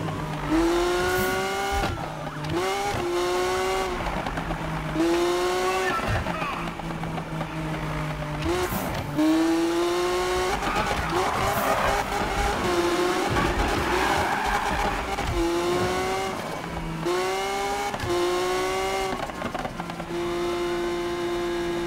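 A powerful car engine roars and revs up through the gears.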